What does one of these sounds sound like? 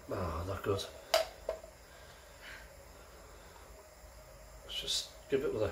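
Beer pours from a bottle into a glass, gurgling and fizzing.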